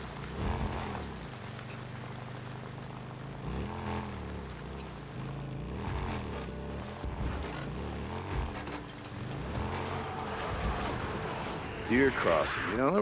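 A motorcycle engine revs up and down.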